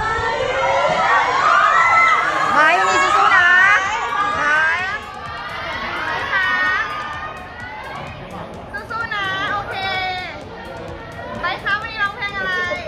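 Young women scream and squeal excitedly close by.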